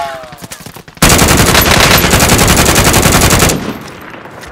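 A gun fires in a rapid, loud burst.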